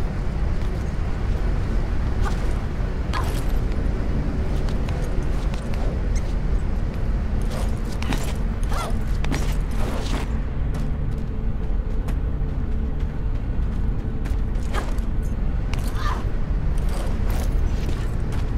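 Hands grab onto stone ledges with soft thuds.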